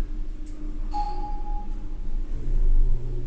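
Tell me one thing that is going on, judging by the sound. An elevator chime dings once.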